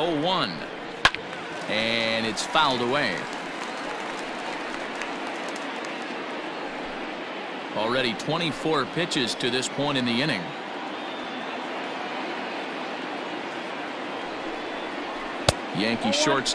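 A baseball smacks into a catcher's mitt with a sharp pop.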